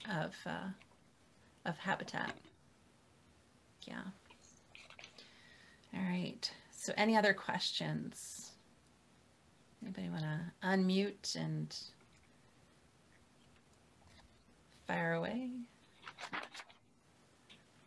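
A middle-aged woman speaks calmly over an online call, with pauses.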